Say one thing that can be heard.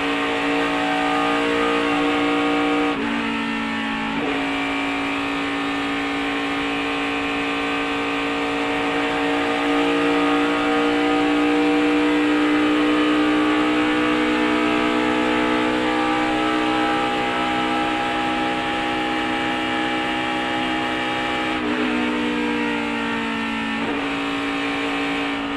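A race car engine roars loudly at high speed, heard from on board.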